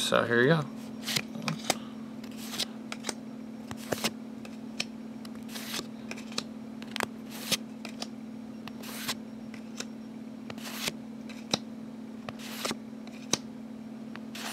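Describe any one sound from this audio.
Cards slide and flick as a hand shuffles through them one by one.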